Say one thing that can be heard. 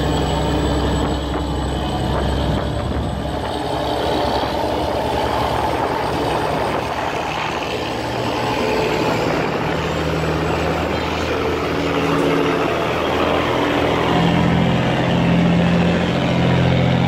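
Water churns and rushes steadily.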